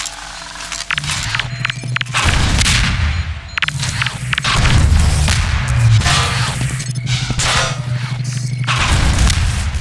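An energy weapon hums and crackles with a low buzz.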